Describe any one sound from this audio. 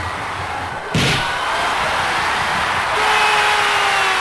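A crowd bursts into loud cheering after a goal.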